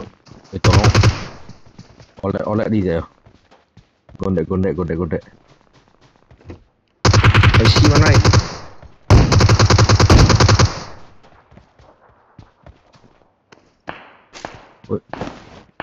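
Footsteps crunch quickly through snow and over hard floors.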